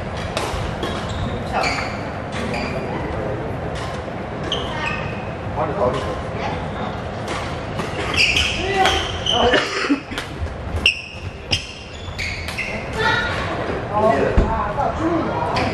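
Badminton rackets smack a shuttlecock in an echoing hall.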